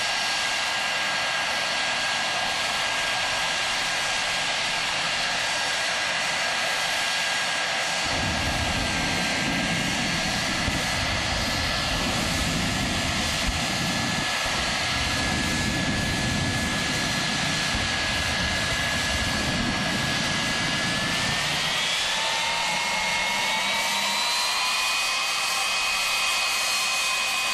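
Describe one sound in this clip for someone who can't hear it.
A jet engine whines steadily and then rises in pitch as it spools up.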